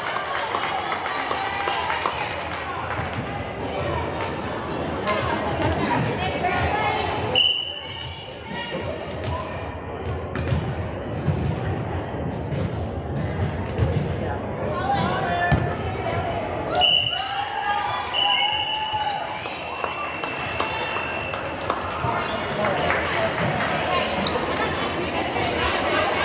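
Volleyballs thump as they are hit and bounce on a wooden floor.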